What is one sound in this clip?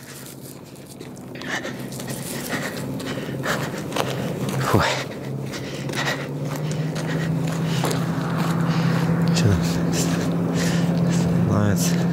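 A vehicle approaches along the road and grows louder.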